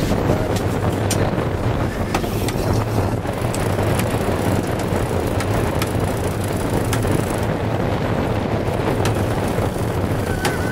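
A winch clicks as a man cranks it.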